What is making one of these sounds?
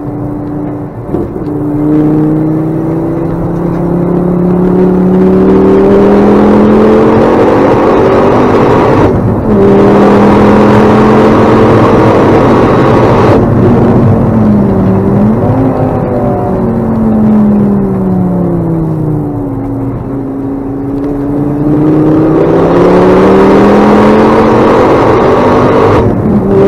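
A car engine roars loudly from inside the cabin, revving up and down as the gears change.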